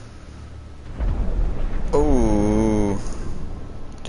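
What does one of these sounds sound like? An explosion booms underwater.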